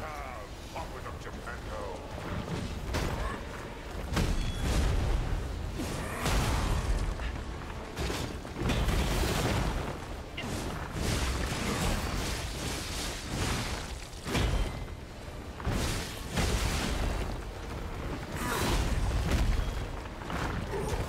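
Heavy weapons clash and strike with loud booming impacts.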